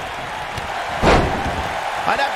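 A heavy body slams onto a mat with a loud thud.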